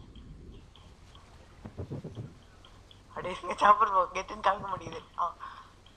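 Water splashes around a swimmer.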